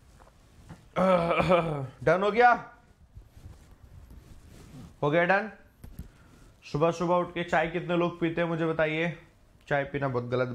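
A young man speaks animatedly and close up.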